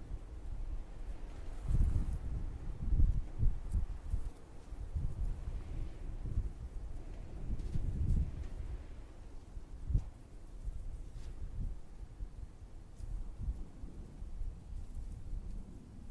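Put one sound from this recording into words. Wind gusts rumble outdoors.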